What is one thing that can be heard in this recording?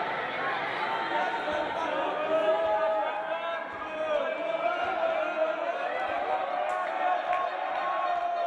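A crowd of spectators chatters and cheers in a large echoing hall.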